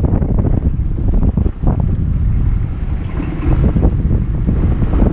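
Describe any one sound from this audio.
Wind buffets loudly past a rider.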